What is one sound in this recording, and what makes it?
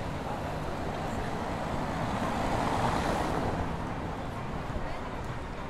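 A car drives slowly past close by.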